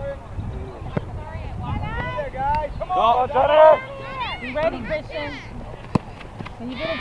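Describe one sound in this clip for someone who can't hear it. A soccer ball thumps as a child kicks it.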